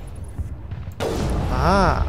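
A rifle fires with a sharp crack.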